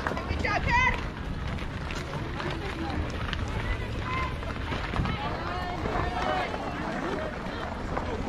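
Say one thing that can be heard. Children shout and call out across an open outdoor field.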